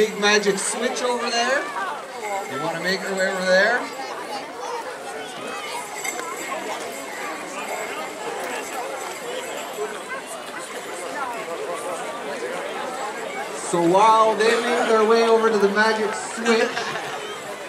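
A group of people sings loudly close by.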